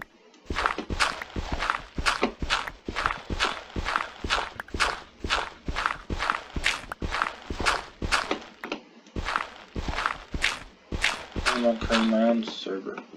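Dirt crunches in quick, repeated bursts as blocks are dug away.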